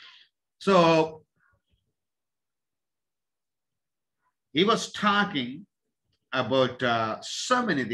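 A middle-aged man speaks with animation close to a microphone, in short bursts with pauses.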